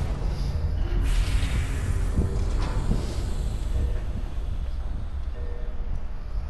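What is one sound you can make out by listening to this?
Steam hisses loudly as a heavy pod opens.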